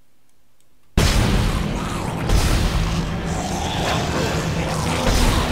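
A weapon fires shots in quick bursts.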